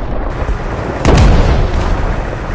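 A tank's cannon fires with a heavy boom.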